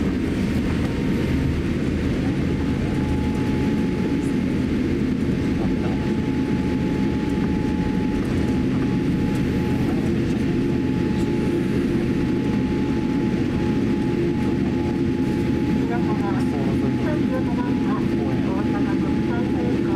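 Jet engines roar steadily from inside an airliner cabin.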